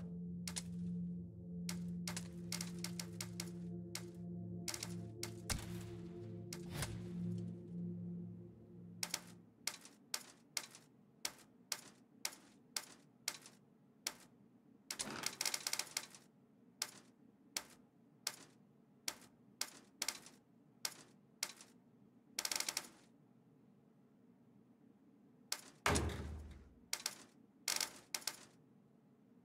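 Short interface clicks tick as menu items change.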